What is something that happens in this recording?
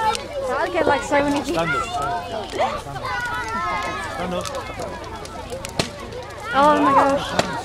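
Fire roars and crackles nearby.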